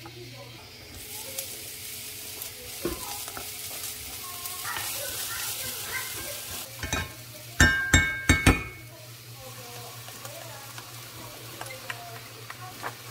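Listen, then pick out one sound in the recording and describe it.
Oil sizzles in a hot pan.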